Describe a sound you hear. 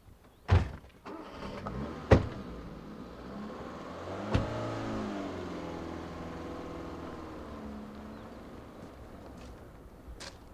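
A car engine starts and the car drives slowly away.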